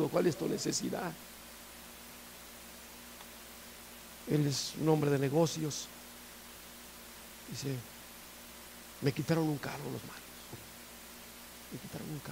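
A middle-aged man speaks through a microphone in short, deliberate phrases with pauses.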